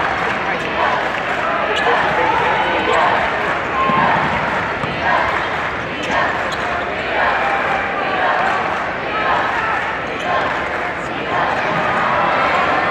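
A large crowd cheers and chatters loudly in an echoing arena.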